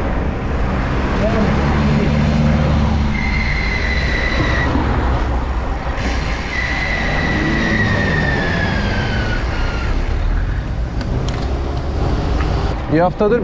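Bicycle tyres hum on the road.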